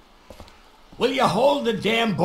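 An older man speaks gruffly.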